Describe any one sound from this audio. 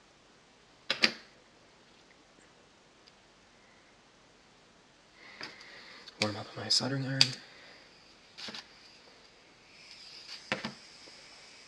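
Small objects knock onto a table now and then.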